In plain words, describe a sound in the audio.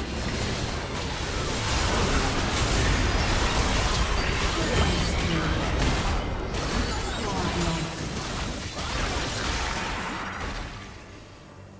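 Video game spell blasts and impacts crackle and boom in a hectic fight.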